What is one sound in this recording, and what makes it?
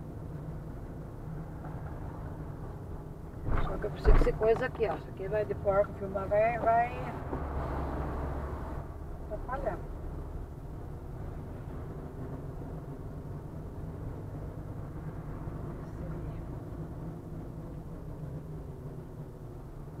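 A car engine hums with a low road rumble inside the car.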